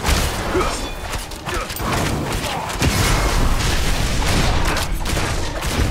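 Game combat sounds clash and crackle as a character fights enemies.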